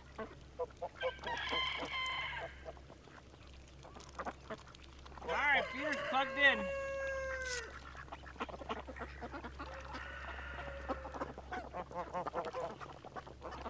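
Ducks quack nearby.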